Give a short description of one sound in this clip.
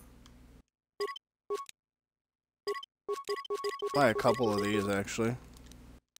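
Short electronic menu beeps sound several times.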